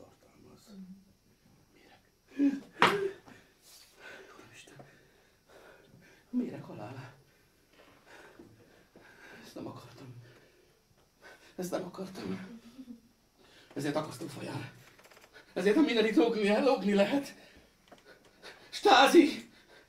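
A middle-aged man speaks theatrically in short bursts with pauses.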